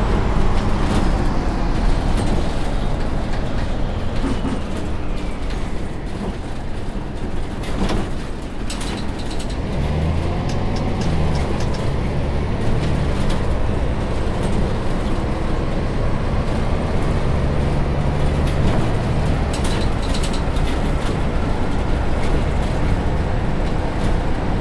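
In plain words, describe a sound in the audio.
A city bus's diesel engine drones as the bus drives along.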